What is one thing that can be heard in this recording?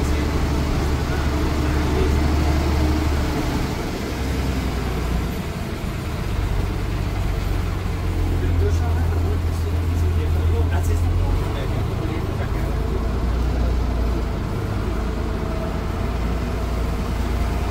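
A bus engine rumbles and drones steadily from inside the cab.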